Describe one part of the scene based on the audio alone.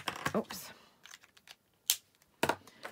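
A marker cap clicks off.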